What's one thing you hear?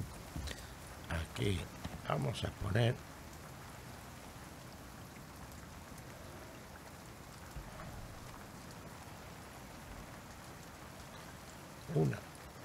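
A man talks briefly into a close microphone.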